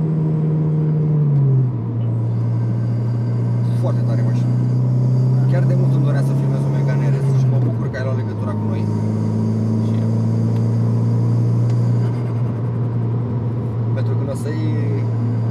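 A car engine hums steadily and shifts pitch as gears change.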